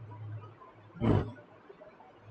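A man coughs briefly close to a microphone.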